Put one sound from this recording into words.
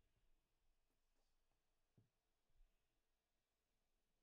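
A hardcover book is flipped over onto a wooden table with a soft thud.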